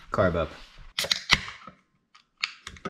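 A can pops open with a hiss.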